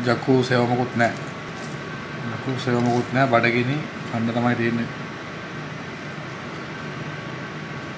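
Fingers squish and mix soft rice on a plate.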